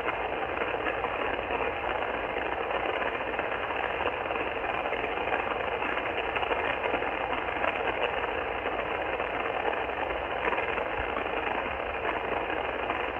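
A radio receiver hisses with steady static noise from its speaker.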